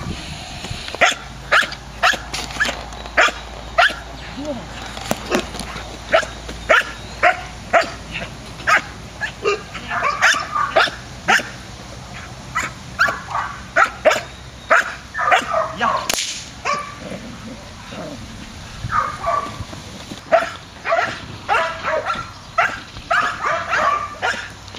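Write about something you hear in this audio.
A young Belgian Malinois barks in sharp bursts.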